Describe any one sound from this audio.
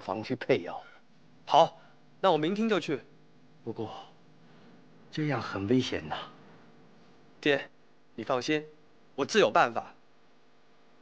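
A young man speaks quietly and earnestly.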